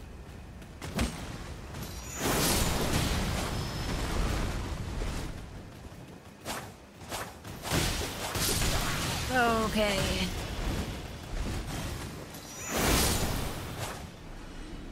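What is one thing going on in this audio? Swords clash and slash in a fight.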